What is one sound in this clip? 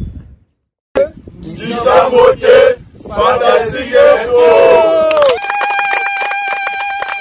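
A group of men shout and cheer together outdoors.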